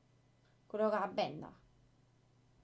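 A young woman speaks briefly and expressively through a microphone.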